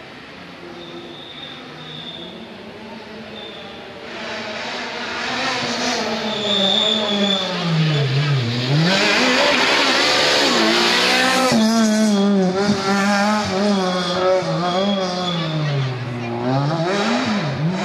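A rally car engine approaches, revving hard and dropping through the gears, roars past close by and then revs on into the distance.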